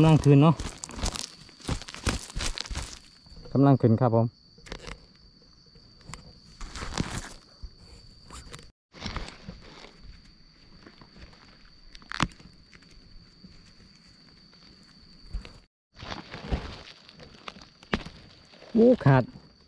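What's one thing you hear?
Dry leaves and soil rustle and crunch close by.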